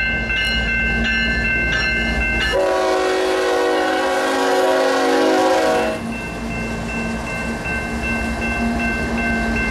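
Train wheels clatter over the rails close by.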